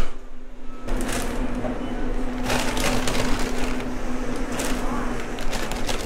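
Hands rustle through a crinkly insulated bag.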